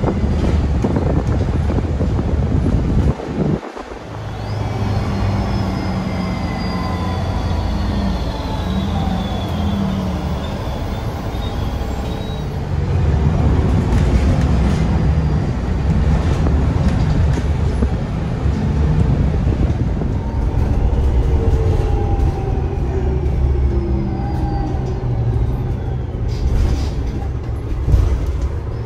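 A bus engine rumbles low and steadily as the bus drives along.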